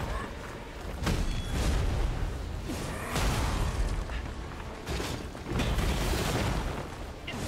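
Rocks crash and rumble as the ground is smashed.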